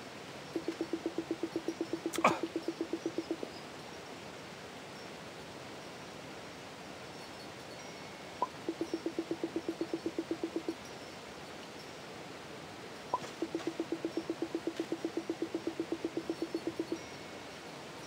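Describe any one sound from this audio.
Short electronic blips chatter rapidly in bursts, like a game's dialogue beeping.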